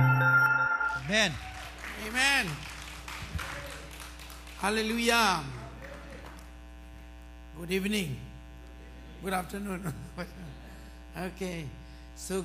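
A man speaks with animation through a microphone in a large echoing room.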